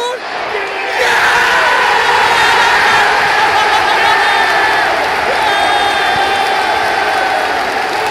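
A crowd of fans chants loudly in a large stadium.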